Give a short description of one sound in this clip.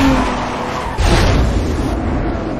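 A car scrapes against a wall with a grinding screech.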